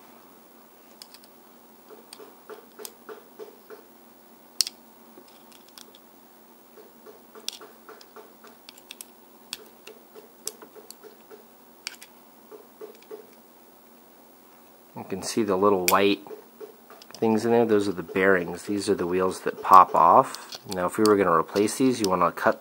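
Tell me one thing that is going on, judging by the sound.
A small tool clicks and scrapes against a metal toy car.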